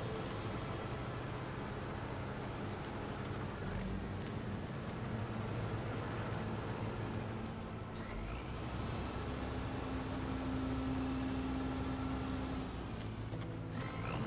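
A heavy truck engine rumbles and labours steadily.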